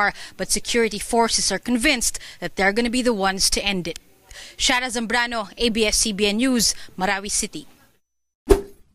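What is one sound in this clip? A young woman speaks steadily into a microphone.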